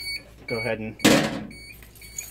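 A metal panel door shuts with a bang.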